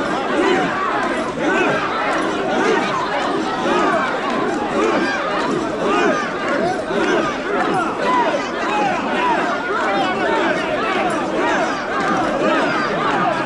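A large crowd of men chant loudly and rhythmically outdoors.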